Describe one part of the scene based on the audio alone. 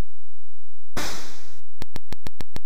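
A burst of electronic noise hisses briefly.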